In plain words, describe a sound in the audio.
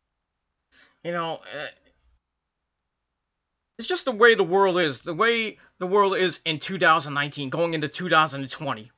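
A man speaks casually and close to a microphone.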